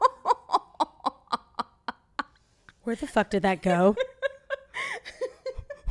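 A young woman laughs loudly close to a microphone.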